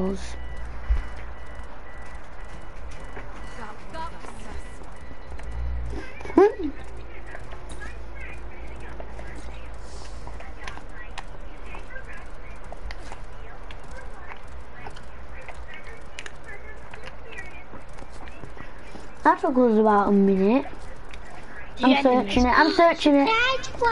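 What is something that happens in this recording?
Horse hooves gallop quickly over the ground.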